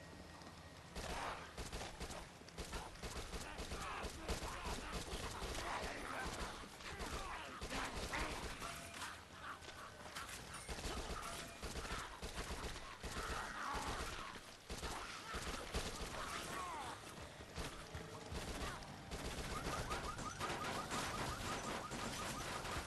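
Rapid gunfire rattles without a break.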